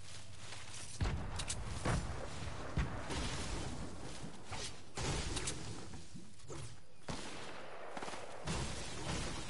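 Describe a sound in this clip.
Footsteps rustle through tall crops.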